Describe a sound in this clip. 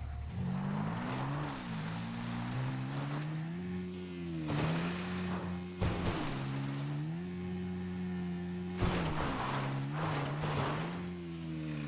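Tyres skid and crunch on dirt.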